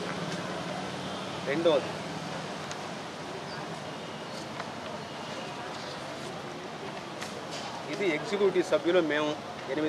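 Paper sheets rustle in a man's hands.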